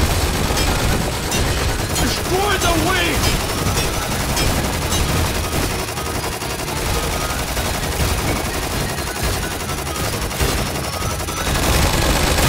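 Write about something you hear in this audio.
Game weapons fire and explode in rapid bursts.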